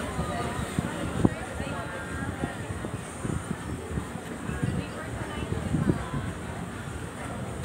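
A crowd of people chatters indistinctly in the distance.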